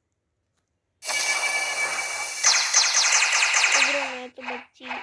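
A magical energy blast bursts with a loud rushing whoosh.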